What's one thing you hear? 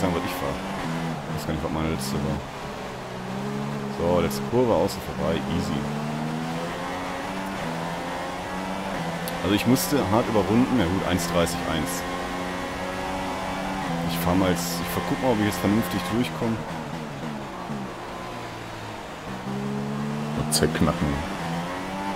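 A racing car engine roars at high revs, its pitch rising and falling through gear changes.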